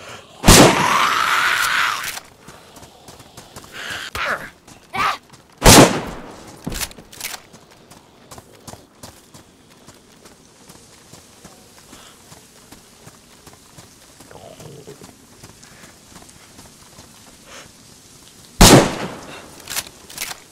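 Loud gunshots ring out, echoing outdoors.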